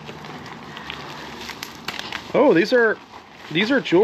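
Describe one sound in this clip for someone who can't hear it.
Bubble wrap crinkles in a hand.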